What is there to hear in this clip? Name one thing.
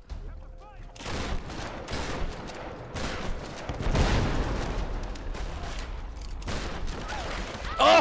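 Gunshots fire in rapid bursts with booming explosions.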